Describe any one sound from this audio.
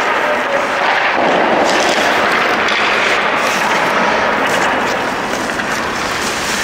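An ice hockey stick taps and slides a puck across the ice.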